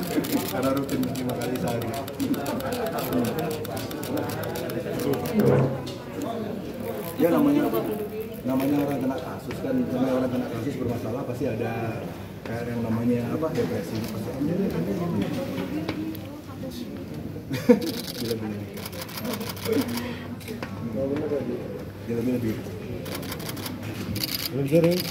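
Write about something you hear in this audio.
A crowd of people murmurs in the background.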